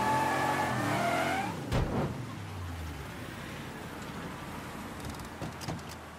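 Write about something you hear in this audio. A car engine revs and then idles.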